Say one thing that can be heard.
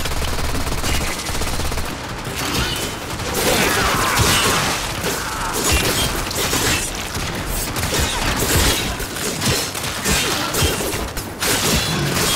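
Blades slash and clang in close combat.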